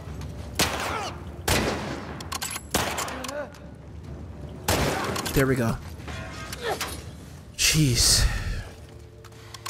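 Rifle shots ring out in quick bursts, echoing.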